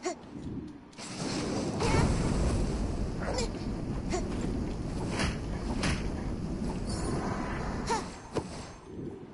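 Flames roar steadily.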